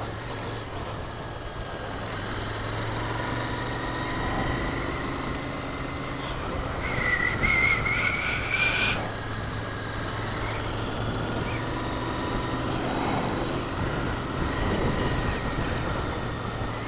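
Wind rushes past a helmet microphone outdoors.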